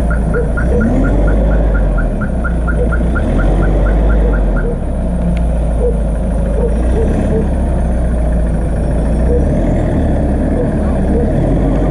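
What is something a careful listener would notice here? An engine rumbles low as a vehicle crawls slowly over rough ground.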